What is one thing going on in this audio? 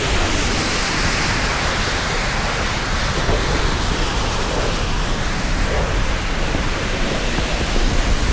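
A jet engine roars steadily as a fighter plane flies.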